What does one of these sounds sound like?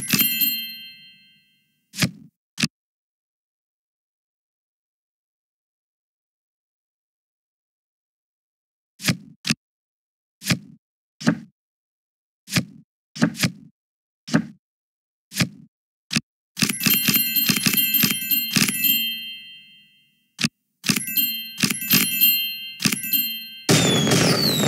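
Game cards snap into place with short clicks.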